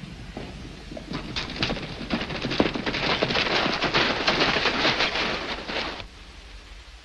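Horses gallop closer, hooves pounding on dirt.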